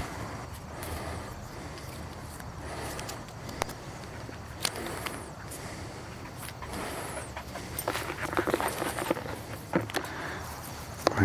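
A plastic wrapper crinkles as it is torn open by hand.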